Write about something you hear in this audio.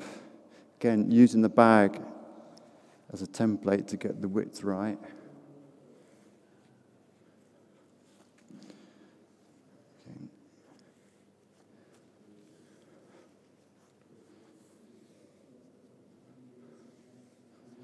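Nylon cords and fabric rustle softly as they are handled.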